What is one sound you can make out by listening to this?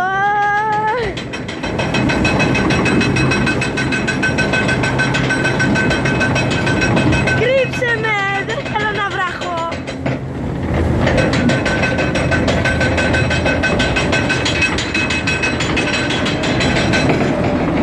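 A log flume boat's lift chain clatters as the boat climbs.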